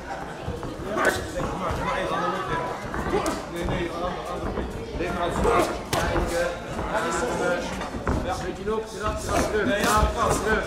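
Gloved punches and kicks thud against bodies.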